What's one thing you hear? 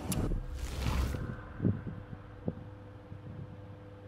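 A menu clicks.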